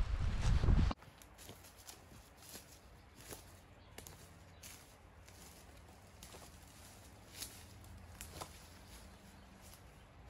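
Footsteps rustle and snap through leaves and twigs a little way off.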